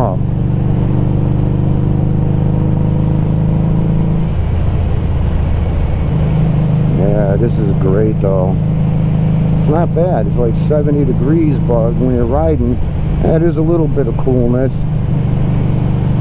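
Wind rushes past a moving motorcycle.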